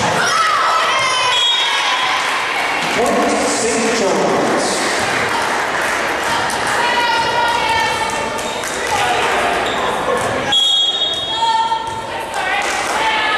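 Young women shout and cheer together in a large echoing gym.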